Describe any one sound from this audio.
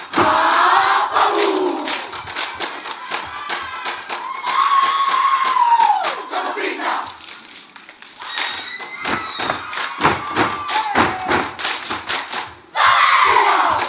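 A group of men sing and chant loudly outdoors.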